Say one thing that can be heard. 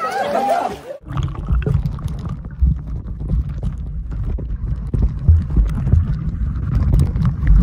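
Muffled underwater rumbling and bubbling fill the sound.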